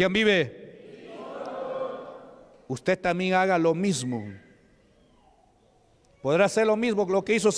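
A man preaches with animation into a microphone, heard through loudspeakers in an echoing hall.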